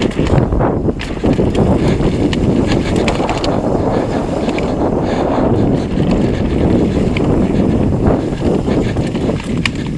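Bicycle tyres crunch and rumble over a bumpy dirt trail.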